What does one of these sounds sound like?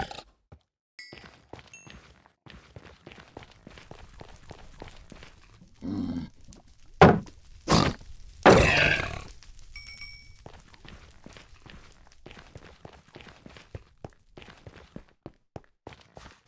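Footsteps crunch steadily on rough stone.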